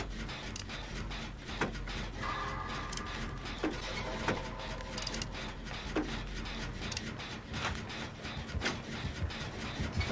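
Metal parts clank and rattle as an engine is repaired by hand.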